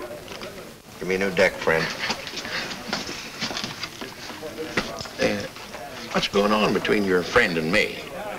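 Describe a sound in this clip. An older man talks with animation nearby.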